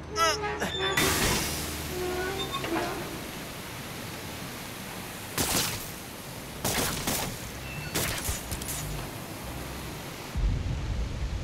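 Steam hisses loudly from a burst pipe.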